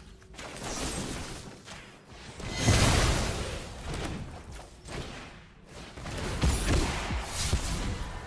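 Magical sound effects from a digital card game whoosh and crackle.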